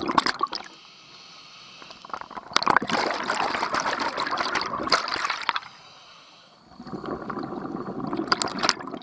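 Air bubbles gurgle and rumble loudly underwater in bursts.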